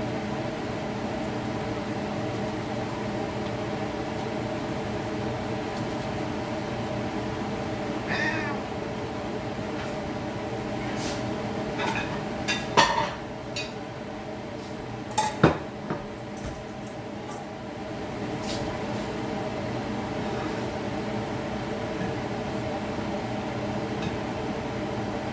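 Oil sizzles and bubbles steadily in a pan.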